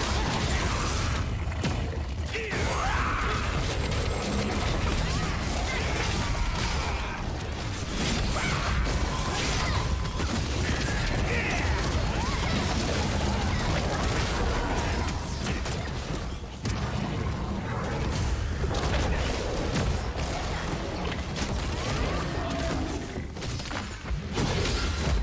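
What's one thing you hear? Magic spells whoosh and crash in quick succession.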